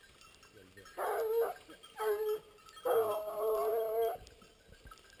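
A man calls out loudly in long drawn-out cries.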